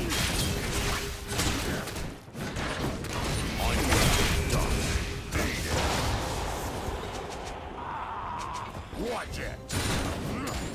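Game spells whoosh and blast in a fast fight.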